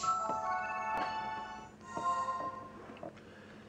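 A handheld game console plays a short bright chiming jingle.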